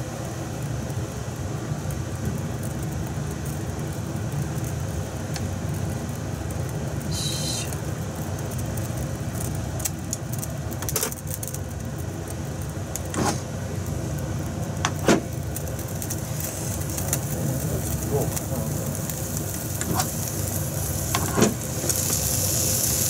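Sausages sizzle softly in a hot pan.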